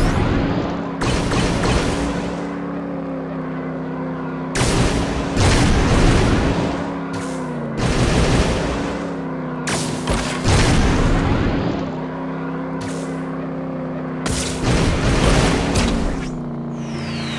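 Speed boosts whoosh in loud bursts.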